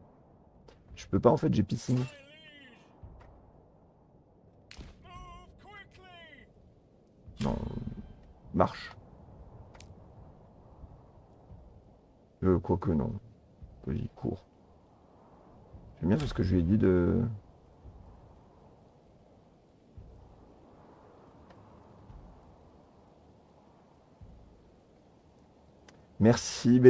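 A man talks through a microphone in short bursts, close and casual.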